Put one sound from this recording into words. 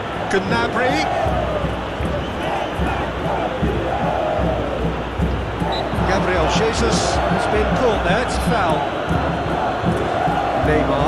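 A crowd cheers louder as an attack builds toward the goal.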